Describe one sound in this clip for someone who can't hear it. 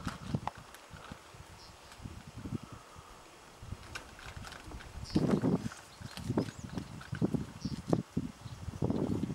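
Wind gusts outdoors and buffets the microphone.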